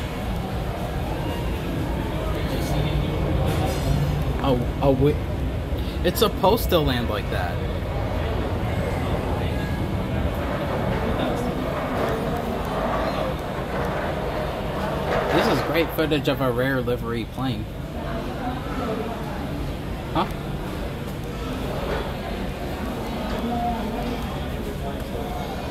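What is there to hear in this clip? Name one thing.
A jet engine hums steadily as an airliner taxis nearby, heard from indoors through a window.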